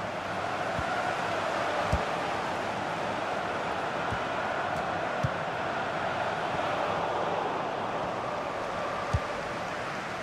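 A stadium crowd roars and chants.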